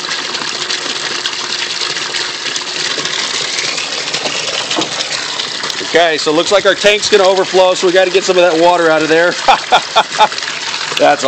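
Water gushes and splashes steadily into a barrel of water.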